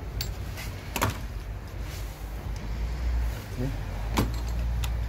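A metal tool clicks against engine parts.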